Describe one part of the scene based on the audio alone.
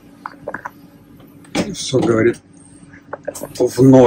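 A control lever clicks into place.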